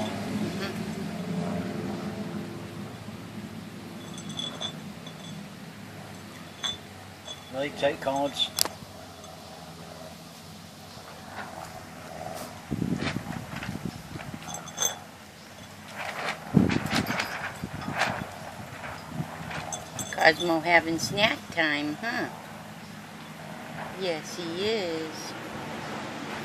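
A glass jar scrapes and clinks on concrete as a cat noses it.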